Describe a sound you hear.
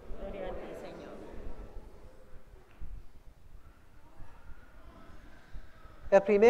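A man speaks slowly and solemnly into a microphone in a softly echoing room.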